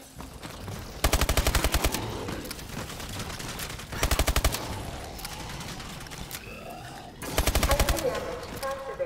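Rapid automatic gunfire rattles in short bursts.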